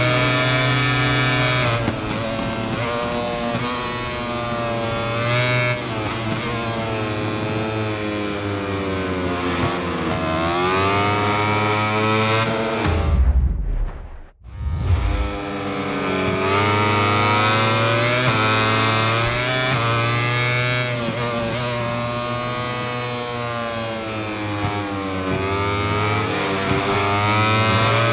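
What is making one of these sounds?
A motorcycle engine whines loudly, revving up and down through the gears.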